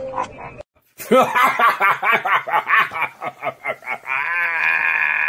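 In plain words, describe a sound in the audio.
A man exclaims loudly with excitement.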